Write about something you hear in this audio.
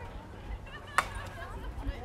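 A bat cracks sharply against a ball once.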